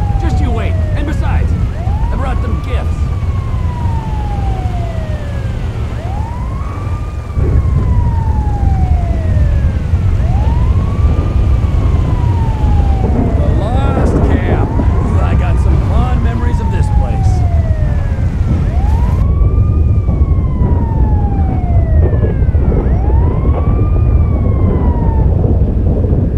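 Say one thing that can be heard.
A siren wails up and down over and over.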